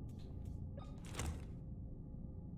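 A short whoosh sweeps as a menu closes.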